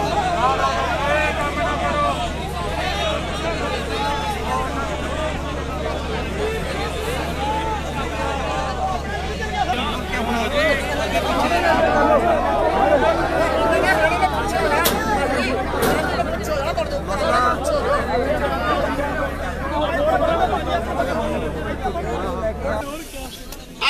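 A crowd of men shouts and chants loudly outdoors.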